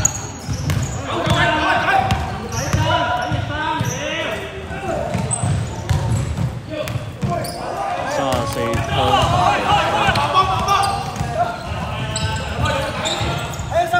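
A basketball thuds as it bounces on a wooden floor.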